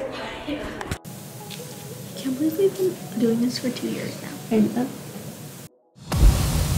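A teenage girl talks with animation close to a microphone.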